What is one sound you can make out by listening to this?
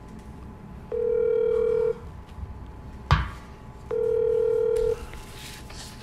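A phone beeps with short steady tones.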